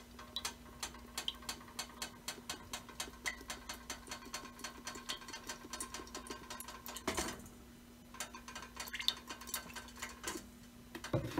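Cooking oil pours into a stainless steel pot.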